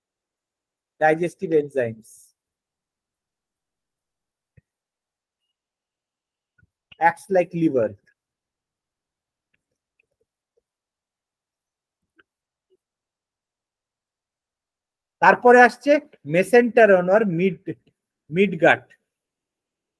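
A man speaks calmly in short phrases through a microphone, heard as if over an online call.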